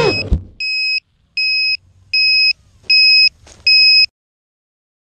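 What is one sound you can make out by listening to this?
A drone's alarm beeps in short, evenly spaced pips.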